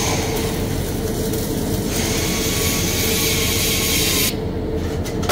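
An arc welder crackles and hisses steadily.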